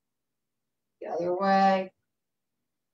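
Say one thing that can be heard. An elderly woman speaks briefly over an online call.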